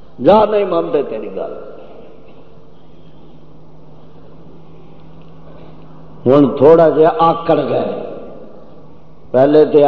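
An elderly man preaches forcefully through a microphone, in bursts with pauses.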